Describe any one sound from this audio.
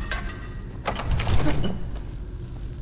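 A heavy wooden door swings open with a loud creak.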